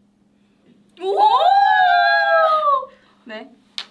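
A young woman squeals with delight close by.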